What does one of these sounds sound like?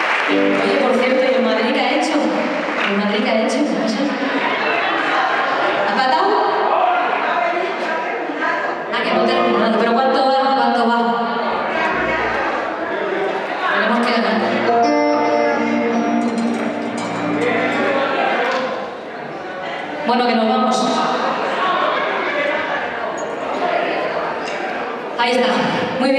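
A small band plays music in a large echoing hall.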